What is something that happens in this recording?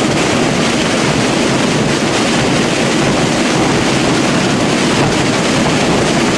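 Many bass drums and snare drums pound loudly and densely together.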